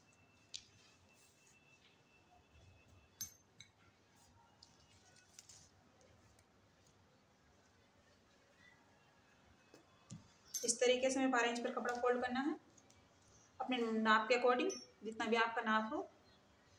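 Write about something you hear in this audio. Cloth rustles softly as hands smooth it flat.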